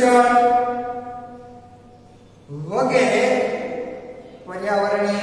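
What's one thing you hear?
A young man sings loudly nearby in long held notes.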